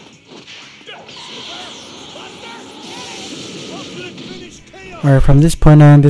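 An energy blast whooshes and roars.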